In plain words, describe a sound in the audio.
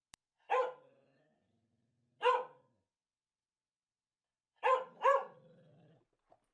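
A dog barks loudly and sharply, close by.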